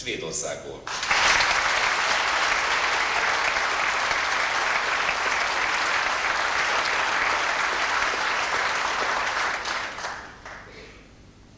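An audience applauds loudly in a large hall.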